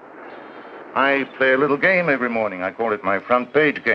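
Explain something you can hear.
A man speaks clearly and calmly nearby.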